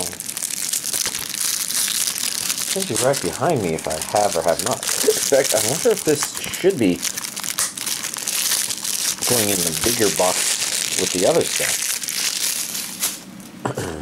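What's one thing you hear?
Plastic wrap crinkles and rustles as hands handle it.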